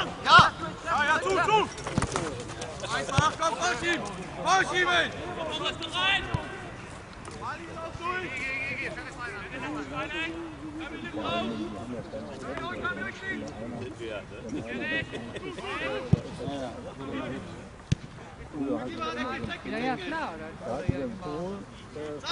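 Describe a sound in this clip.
Men shout across an open field.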